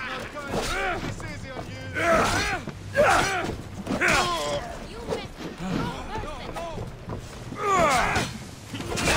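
Swords clash and ring in a fight.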